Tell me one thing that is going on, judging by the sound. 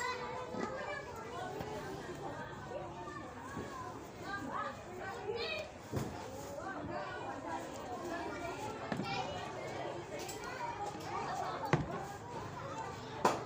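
Balloons thump as children bat them about.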